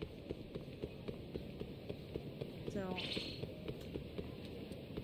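Quick footsteps slap on pavement at a running pace.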